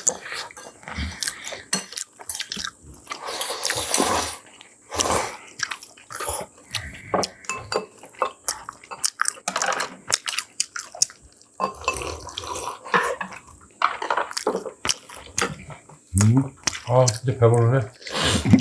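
Metal chopsticks click against ceramic bowls and plates.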